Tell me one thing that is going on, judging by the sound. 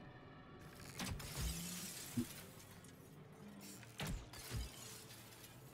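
Game spell effects burst with loud whooshes and thuds.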